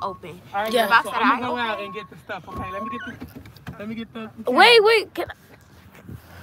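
A young girl talks animatedly close by.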